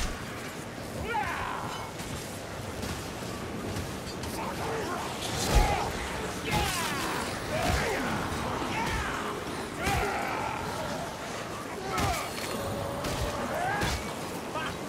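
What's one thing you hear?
Creatures snarl and growl.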